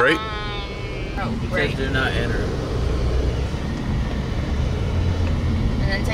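A car engine hums low and steadily from inside the car.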